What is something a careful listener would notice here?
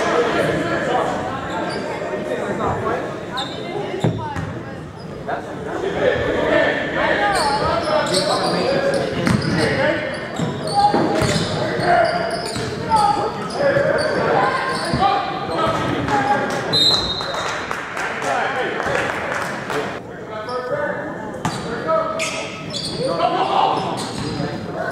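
A crowd of spectators chatters and cheers in a large echoing gym.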